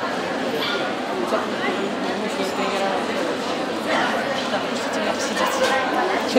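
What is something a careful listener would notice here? A woman talks softly to a small dog.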